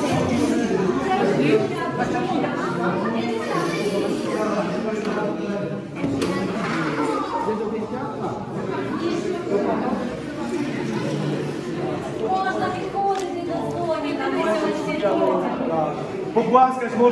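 Children chatter and call out excitedly in a busy room.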